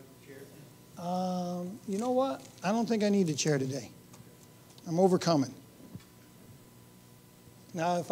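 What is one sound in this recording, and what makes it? A middle-aged man speaks calmly through a microphone.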